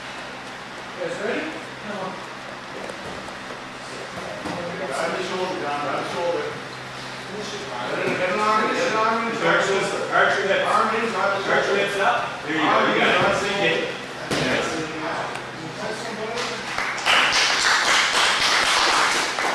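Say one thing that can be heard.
A man speaks calmly, explaining, close by.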